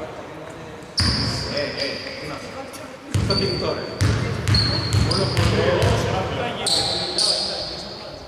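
A basketball bounces with dull thumps on the court.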